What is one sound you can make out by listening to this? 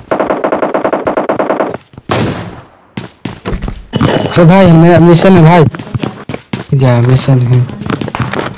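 Footsteps thud quickly across a floor.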